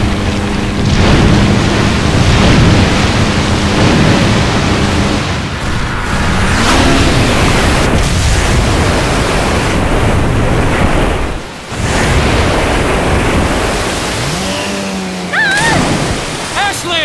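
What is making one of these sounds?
A jet ski engine roars over water.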